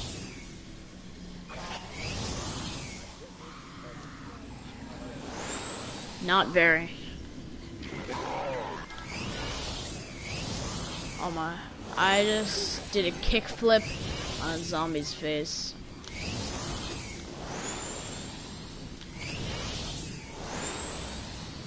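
A hoverboard hums and whooshes as it glides along.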